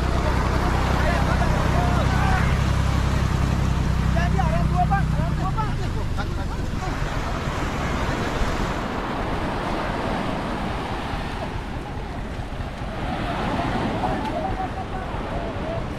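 Crows caw nearby.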